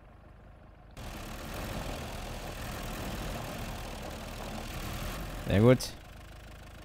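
A truck engine rumbles.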